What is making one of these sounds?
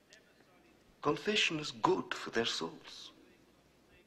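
A middle-aged man speaks calmly and firmly.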